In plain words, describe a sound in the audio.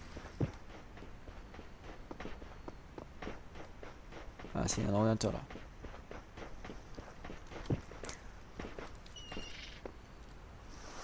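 Footsteps crunch steadily over sand and rock.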